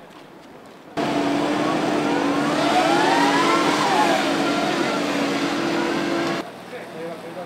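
A digger's engine roars loudly close by, its pitch rising and falling as it revs.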